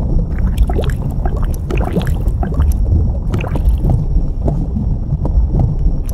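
Bubbles gurgle and pop underwater.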